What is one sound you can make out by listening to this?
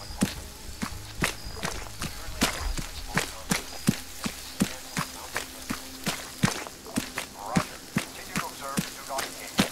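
Footsteps crunch steadily over leaves and undergrowth.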